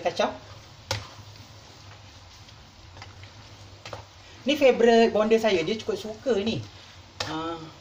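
A spoon stirs thick creamy pasta in a pan.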